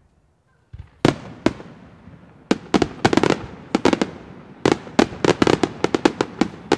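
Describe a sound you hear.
Fireworks burst with loud sharp bangs and crackles outdoors.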